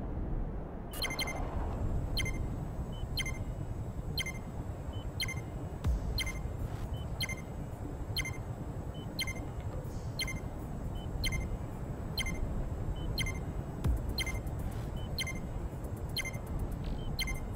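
A countdown ticks sharply once every second.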